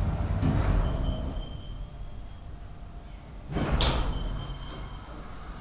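An elevator chime dings.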